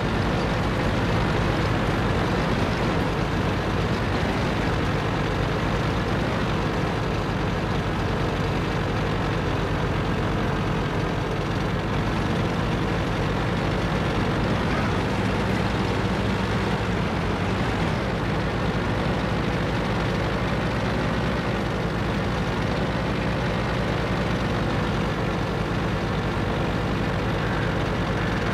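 A tank engine rumbles steadily as the tank drives over rough ground.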